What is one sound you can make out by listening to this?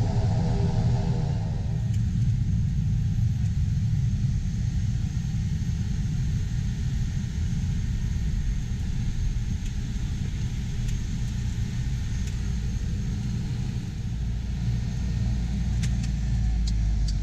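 A propeller engine drones loudly and steadily.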